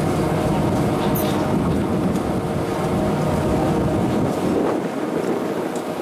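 A chairlift's machinery hums and rumbles steadily close by.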